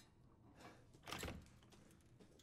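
A wooden door's lock clicks open.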